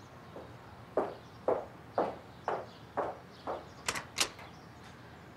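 High heels click on a hard floor as a woman walks away.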